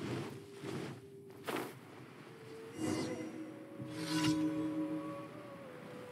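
Wings flutter as a glider sails through the air.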